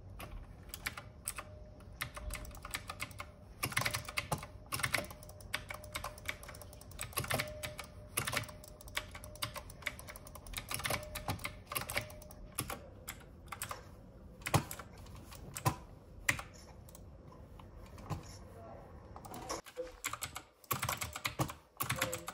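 Keys on a keyboard click and clatter rapidly.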